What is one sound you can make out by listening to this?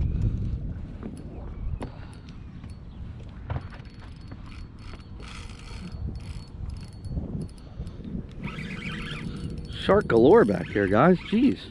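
A fishing reel clicks as its handle is wound.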